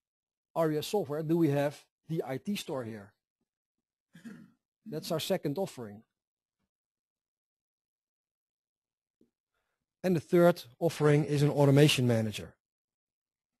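A middle-aged man speaks calmly and clearly into a microphone, in short phrases with pauses.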